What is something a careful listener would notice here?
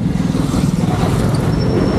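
A scooter engine passes close by.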